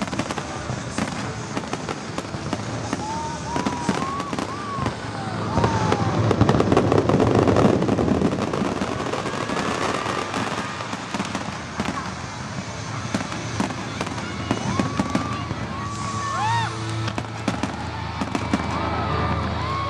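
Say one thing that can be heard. Fireworks boom and pop nearby.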